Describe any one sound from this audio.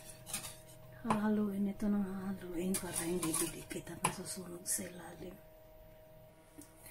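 A wire whisk scrapes and taps against a metal pot.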